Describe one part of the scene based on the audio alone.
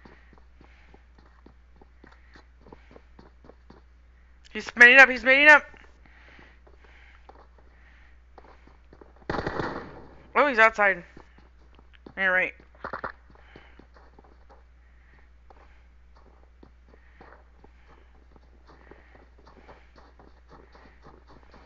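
Footsteps thud steadily on wooden floors and snow.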